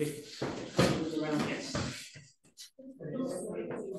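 Bodies thump onto a padded mat.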